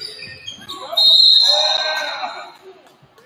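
A referee blows a sharp whistle in an echoing gym.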